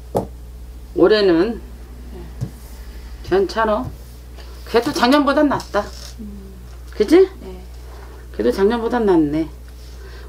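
A middle-aged woman speaks expressively into a close microphone.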